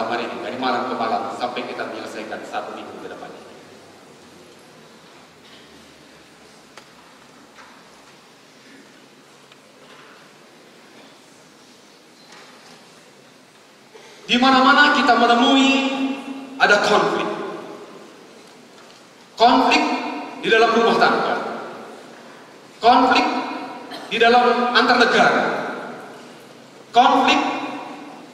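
A man speaks through a microphone and loudspeakers in a large echoing hall, with animation and long pauses.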